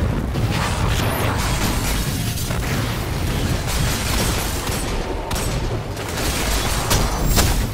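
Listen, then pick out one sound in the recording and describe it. Gunfire and explosions crackle and boom in a game.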